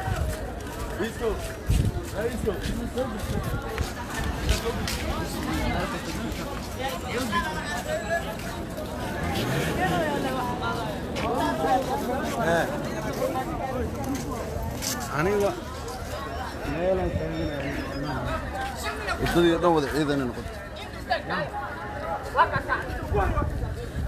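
Several men talk and shout excitedly nearby outdoors.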